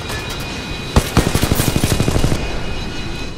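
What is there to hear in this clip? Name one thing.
A rifle fires in a rapid burst.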